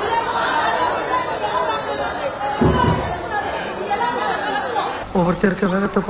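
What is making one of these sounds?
A crowd of women shout and argue over each other.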